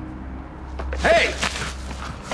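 A man shouts sharply nearby.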